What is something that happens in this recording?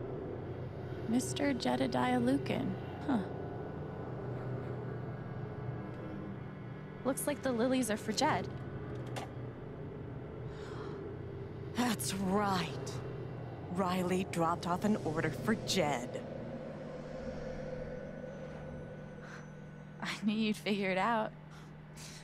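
A young woman speaks calmly, heard through a recording.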